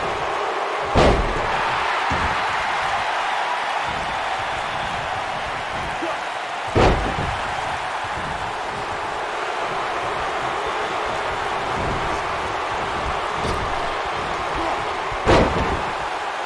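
Bodies slam onto a wrestling mat with heavy thuds.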